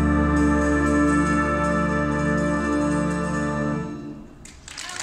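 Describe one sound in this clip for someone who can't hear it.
A wind band plays a loud, sustained chord outdoors.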